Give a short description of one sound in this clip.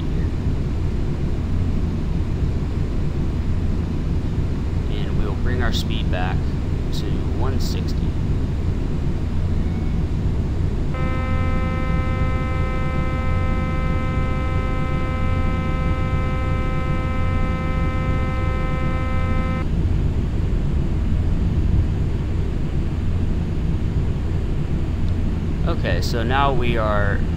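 Jet engines drone steadily with a low rumble.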